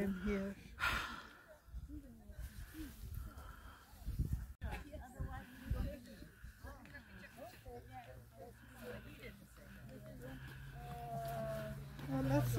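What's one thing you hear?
A group of people chat quietly at a distance.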